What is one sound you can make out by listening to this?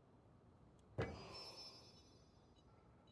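A menu sound effect rings out with a bright shimmering chime.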